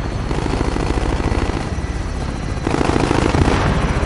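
A helicopter's rotor thuds nearby.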